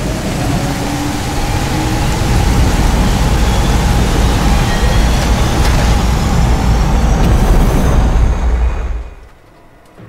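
A spacecraft's engines roar loudly overhead.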